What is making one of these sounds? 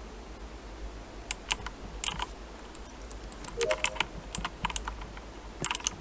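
A key clicks and turns in a lock.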